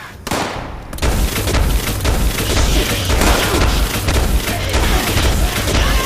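An electric weapon crackles and buzzes loudly.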